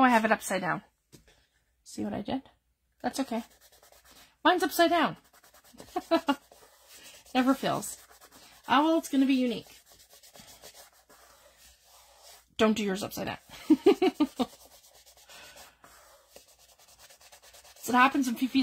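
Fingers rub and press over paper, making a soft rustle.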